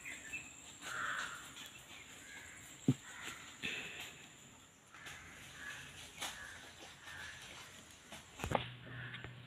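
A knife blade scrapes softly along a strip of bamboo.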